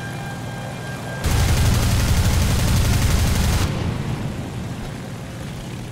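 A plane's propeller engine drones steadily.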